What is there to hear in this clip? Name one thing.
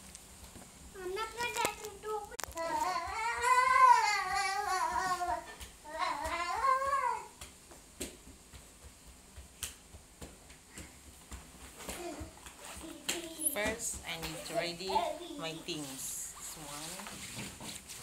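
A young woman talks close by in a lively, sing-song voice.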